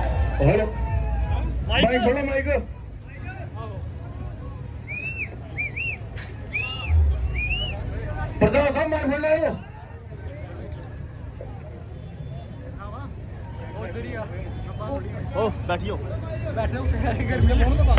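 A crowd murmurs and talks throughout.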